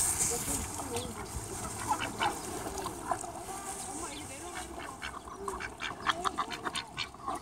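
Ducks quack nearby.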